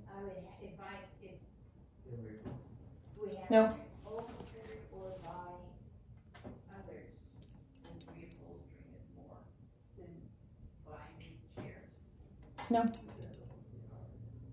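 A woman talks softly and coaxingly nearby.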